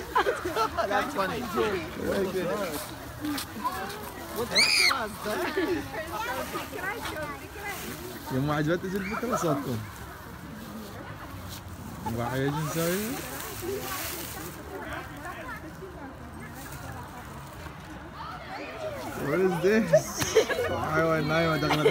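A crowd of adults and children talk and call out nearby, outdoors.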